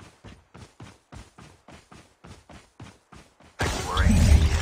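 Footsteps thud quickly and evenly on grass.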